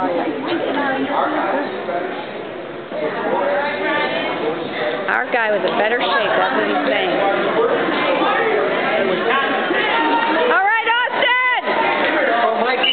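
A crowd of children chatters and calls out in an echoing hall.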